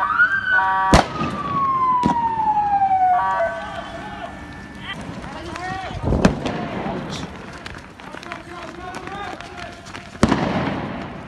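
Sharp bangs go off nearby.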